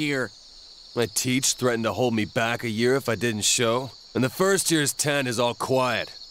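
A young man speaks gruffly, close up.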